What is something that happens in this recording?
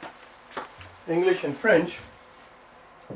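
A man speaks in a lecturing voice, close by.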